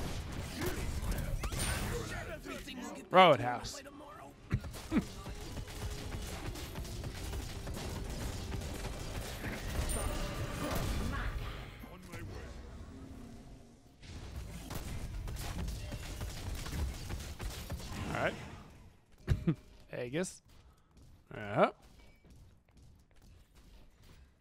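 A man talks with animation into a headset microphone.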